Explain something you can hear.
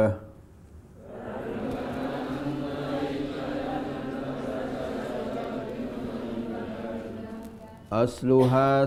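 A group of women recite together in a low, murmuring chorus.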